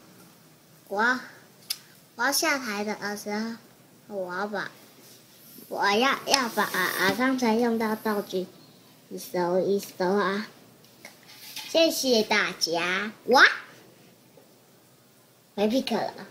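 A young boy speaks calmly close by, in short bursts.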